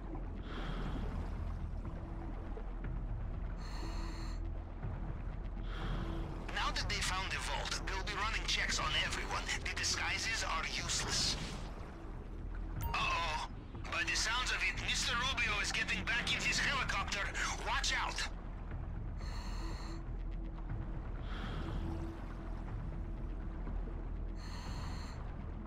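Water swishes in bursts as a swimmer strokes underwater.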